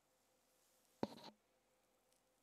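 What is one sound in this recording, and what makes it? A short electronic notification chime sounds once.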